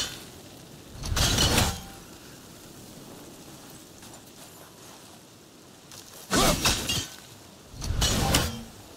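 An axe lands with loud, heavy crashes.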